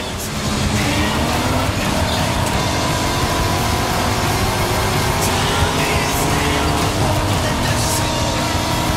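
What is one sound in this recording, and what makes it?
A sports car engine roars loudly as it accelerates.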